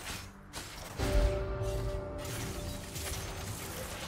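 A bright chime rings out and fades.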